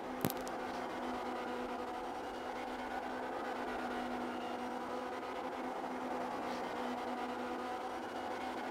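Tyres squeal as a car spins on tarmac.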